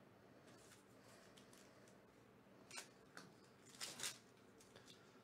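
A plastic wrapper crinkles as it is torn open.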